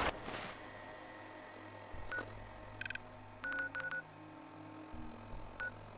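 A handheld device beeps and clicks.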